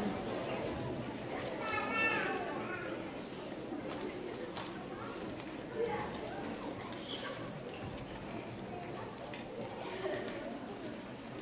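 A children's choir sings together in a large hall.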